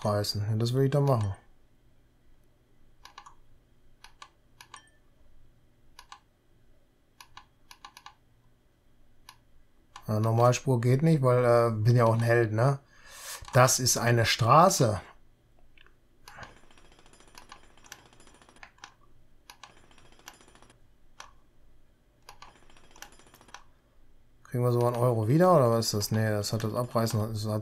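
A middle-aged man talks calmly into a close microphone, pausing now and then.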